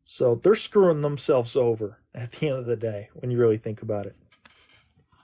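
A young man talks with animation, close to the microphone, heard through an online call.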